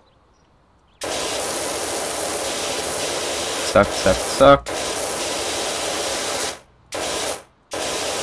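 A pressure washer sprays water onto pavement in bursts.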